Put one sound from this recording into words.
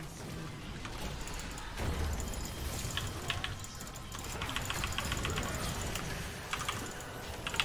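Game spell and combat effects crackle and clash in quick bursts.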